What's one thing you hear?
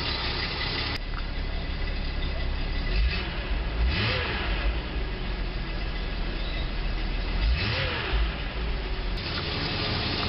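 A car engine idles and revs up twice, rising and falling in pitch.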